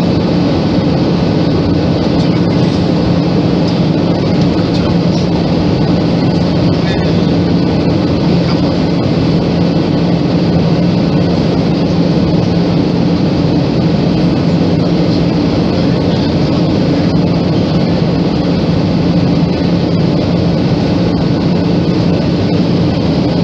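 An aircraft's engines roar steadily from inside the cabin.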